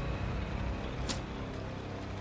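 A knife stabs into flesh with a wet thud.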